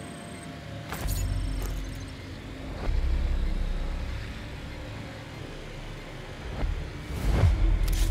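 A drone hums steadily as it flies.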